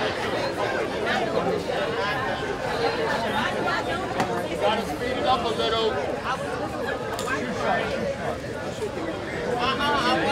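A crowd of men and women chatter and call out excitedly outdoors.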